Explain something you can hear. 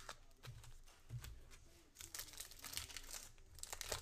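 Plastic wrapping crinkles and rustles as hands tear open a card pack.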